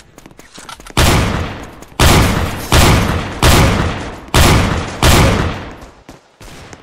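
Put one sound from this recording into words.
Loud explosions boom and rumble one after another.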